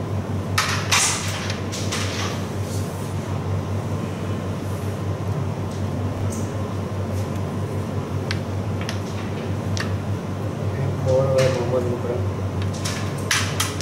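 A carrom striker clicks and taps on a wooden board.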